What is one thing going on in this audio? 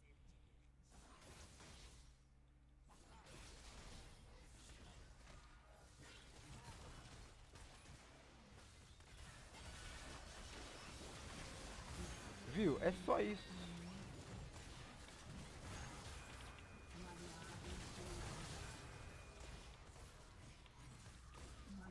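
Magic spells whoosh, crackle and burst during a fast battle.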